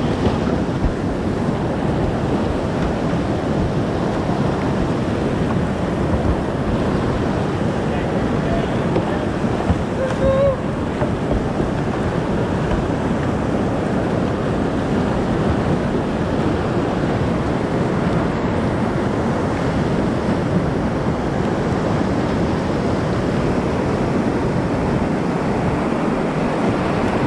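White water rushes and roars loudly close by, outdoors.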